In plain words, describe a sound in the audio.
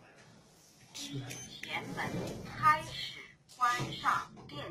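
Lift doors slide shut with a rumble.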